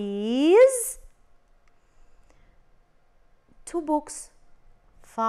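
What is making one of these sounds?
A woman speaks clearly and calmly into a close microphone.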